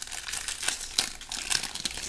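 Card wrappers crinkle as packs are torn open.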